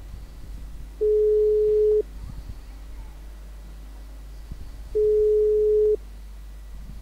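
A phone call's ringing tone beeps twice, steady and even.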